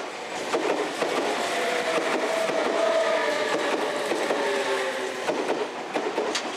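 Train wheels squeal against the rails.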